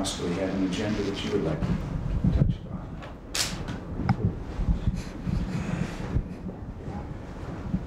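An elderly man speaks calmly across a table.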